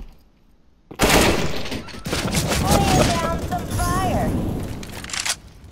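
Rifles fire in loud, rapid bursts.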